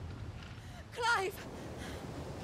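A man shouts out a name.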